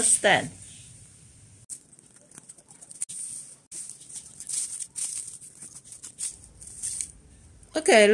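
Plastic leaves rustle softly as they are handled.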